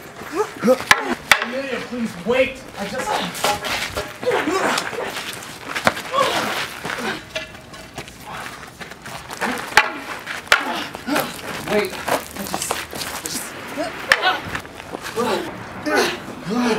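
Wooden staffs clack together in a fight.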